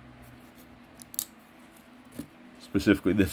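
A folding knife clicks lightly against a hard plastic case.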